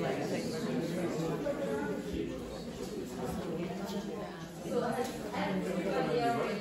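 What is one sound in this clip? A woman speaks to a group in a large echoing hall.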